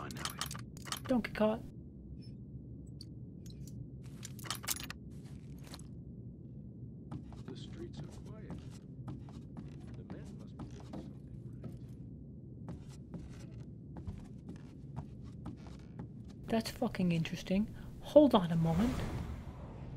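A young man speaks with animation into a headset microphone, close by.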